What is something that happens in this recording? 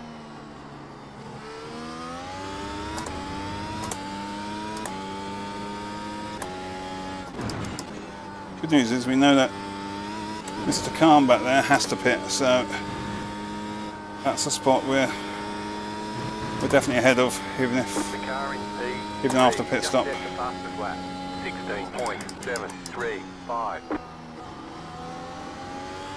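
A racing car engine whines, revving up through the gears and dropping in pitch at each shift.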